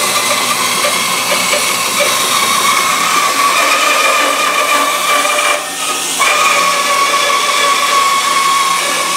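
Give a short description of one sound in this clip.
A band saw runs with a steady whine.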